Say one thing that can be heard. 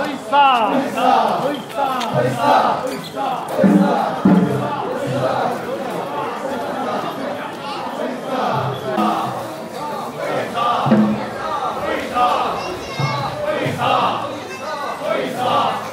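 A group of men chant loudly together in rhythm.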